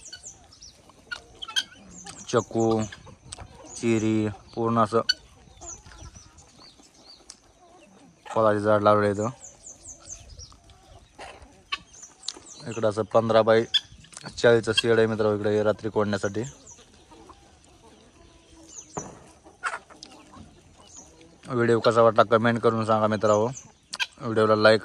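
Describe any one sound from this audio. Chickens and guinea fowl cluck and chirp nearby outdoors.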